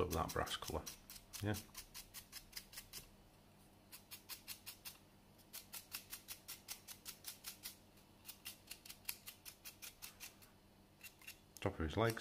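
A stiff brush scratches in quick, rapid strokes.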